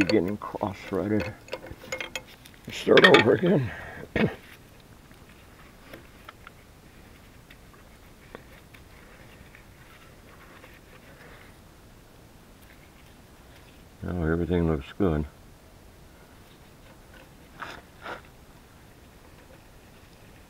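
Metal clicks faintly as hand tools work on fittings.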